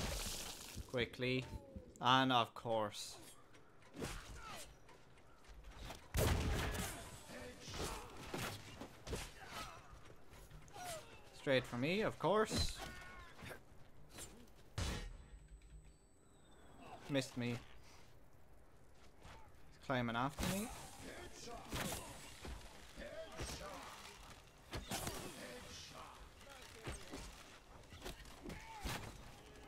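Bowstrings twang and arrows hit with sharp thuds.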